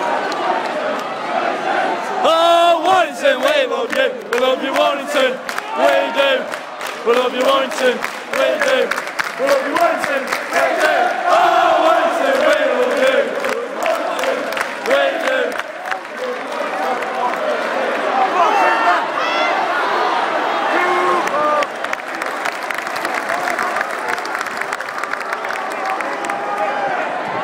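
A large crowd roars and cheers in the open air.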